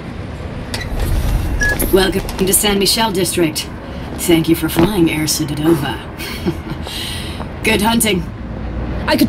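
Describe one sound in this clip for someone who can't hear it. A woman speaks briskly over a radio.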